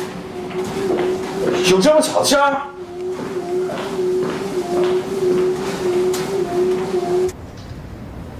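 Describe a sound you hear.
A treadmill belt whirs and thumps under running feet.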